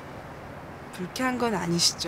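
A woman speaks softly and wistfully, close by.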